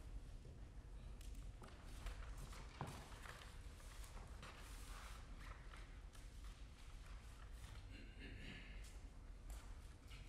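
Sheet music rustles as pages are turned.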